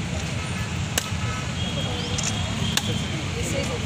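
A coconut cracks sharply as it is smashed on the ground.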